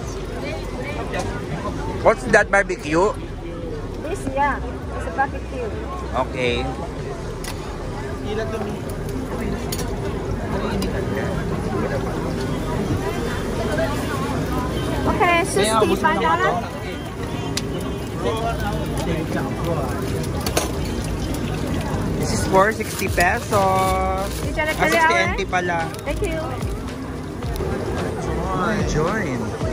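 A crowd chatters steadily all around.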